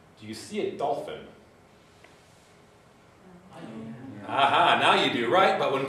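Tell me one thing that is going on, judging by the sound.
A man speaks calmly to an audience in a large echoing room.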